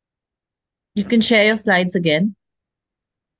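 A woman speaks briefly through an online call.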